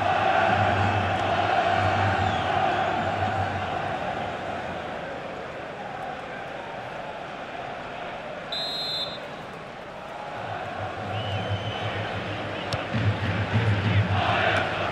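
A large stadium crowd roars and chants throughout, louder at the start and end.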